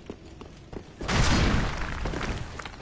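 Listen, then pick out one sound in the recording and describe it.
A loud magical blast roars and rushes.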